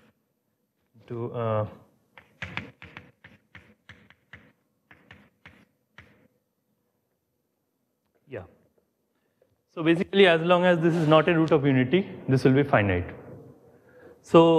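A man speaks calmly through a microphone in an echoing room.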